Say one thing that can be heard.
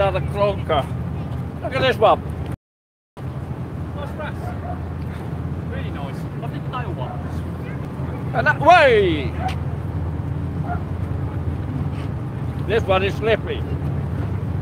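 A man talks casually nearby, outdoors.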